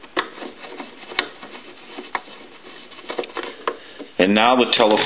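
Small clicks and scrapes come from a knob being turned by hand.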